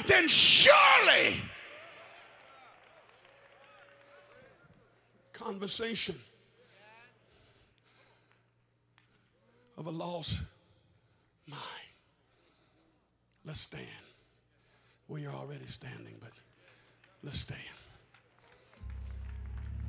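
A man speaks passionately into a microphone in a large echoing hall, in short bursts.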